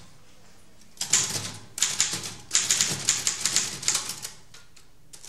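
A rooster crows loudly.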